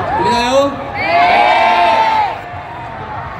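A young man speaks into a microphone, heard loudly over loudspeakers.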